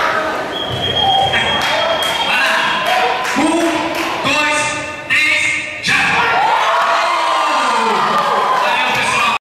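A young man talks energetically into a microphone, heard over loudspeakers in a large echoing hall.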